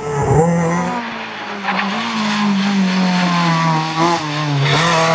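A rally car engine revs high as it accelerates uphill.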